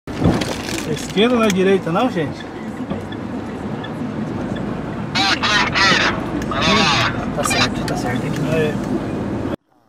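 A man talks with animation inside a car.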